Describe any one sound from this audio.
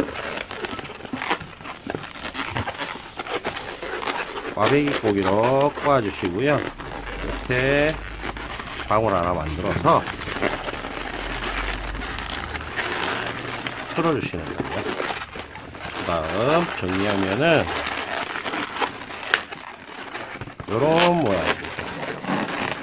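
Balloon rubber rustles and creaks under the fingers.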